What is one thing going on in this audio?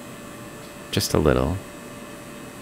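A man says a few words close to a headset microphone.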